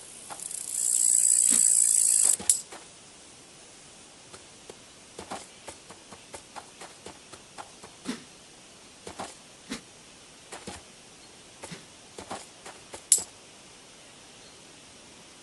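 Soft game footsteps patter as a cat walks.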